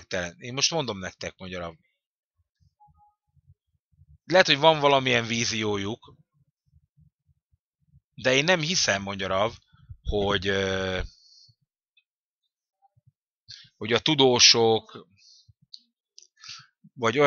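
An elderly man speaks with animation into a close microphone, pausing between phrases.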